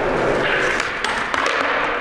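A skateboard grinds along a metal rail.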